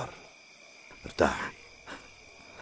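An elderly woman speaks weakly and sorrowfully.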